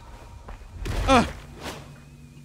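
A heavy blow slams into the ground with a crash.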